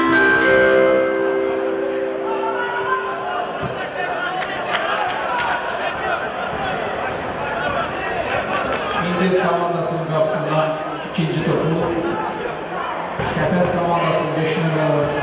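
A crowd sings and chants in an open stadium.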